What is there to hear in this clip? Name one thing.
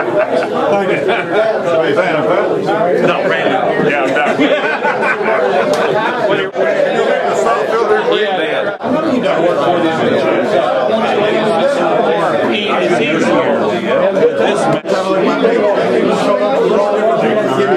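Men laugh heartily close by.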